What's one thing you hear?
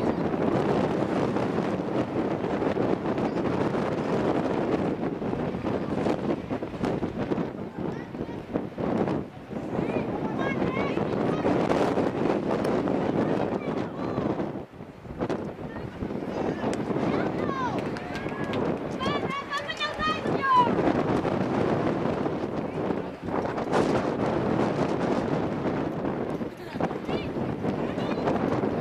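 Wind blows hard across a microphone outdoors.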